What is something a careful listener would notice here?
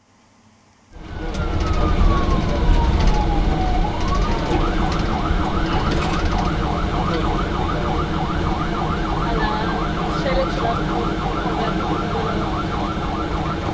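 An ambulance siren wails, first falling then rapidly rising and falling.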